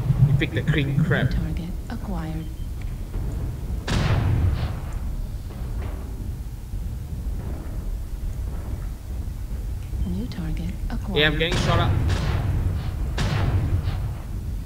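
Heavy mechanical footsteps thud steadily.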